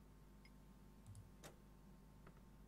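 A knuckle knocks on a wooden door.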